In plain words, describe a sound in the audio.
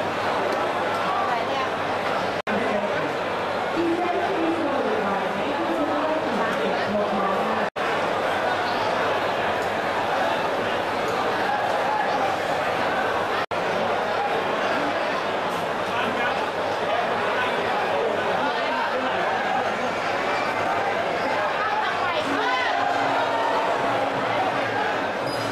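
A large crowd chatters and cheers loudly in an echoing arena.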